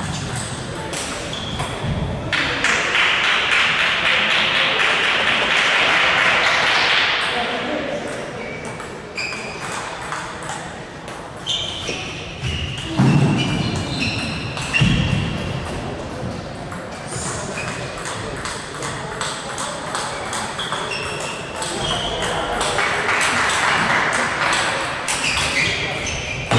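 Ping-pong balls click on tables and paddles in a large echoing hall.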